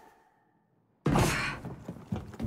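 A heavy thud sounds on metal.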